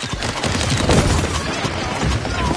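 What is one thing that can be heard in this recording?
Gunfire and blasts from a video game battle ring out loudly.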